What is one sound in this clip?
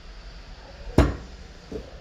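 A knife tip taps on wood.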